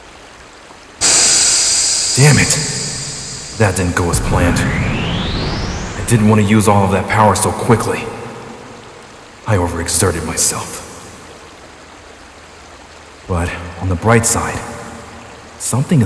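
A crackling surge of energy bursts out in loud waves.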